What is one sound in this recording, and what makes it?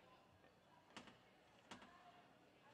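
Footsteps knock on a wooden deck.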